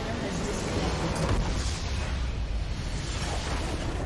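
A crystal structure shatters with a loud explosion.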